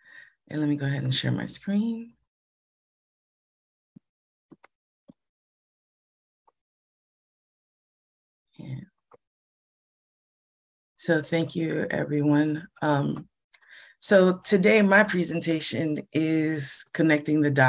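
A middle-aged woman speaks calmly through an online call.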